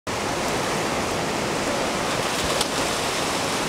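A man splashes into the water.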